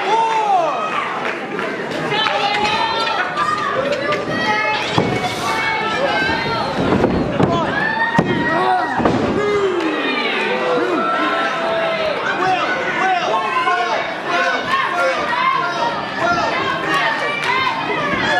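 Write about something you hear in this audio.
A crowd shouts and cheers loudly in an echoing hall.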